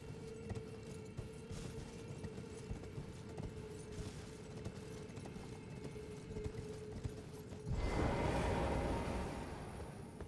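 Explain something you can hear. Hooves clatter on stone as a horse gallops.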